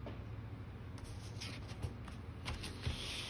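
A sheet of paper rustles as it is turned.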